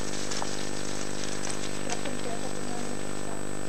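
Mountain bike tyres crunch over gravel and fallen leaves.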